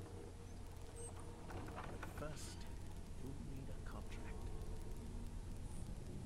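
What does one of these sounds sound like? An elderly man speaks in a low, slow voice.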